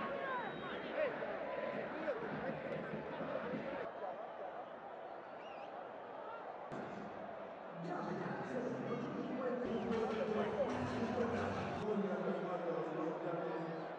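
A large stadium crowd roars and chants.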